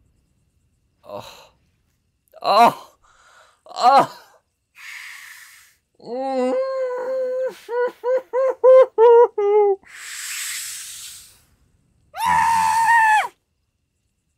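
A young man groans and cries out in dismay, close to a headset microphone.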